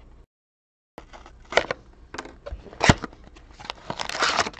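Cardboard scrapes as a box is pulled apart.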